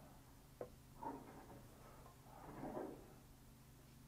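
A paintbrush brushes softly on paper.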